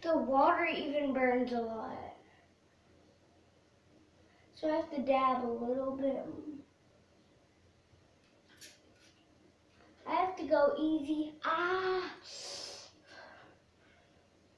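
A young girl sings loudly close by, in a small echoing room.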